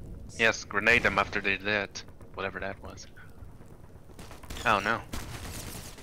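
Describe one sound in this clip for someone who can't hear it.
A rifle fires shots.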